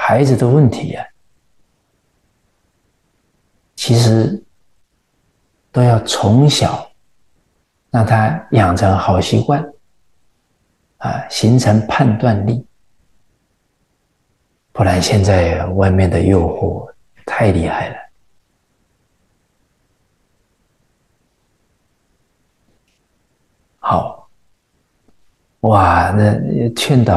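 A middle-aged man speaks calmly into a close microphone, in short phrases with long pauses.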